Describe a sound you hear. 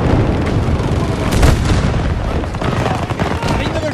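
An explosion booms, scattering debris.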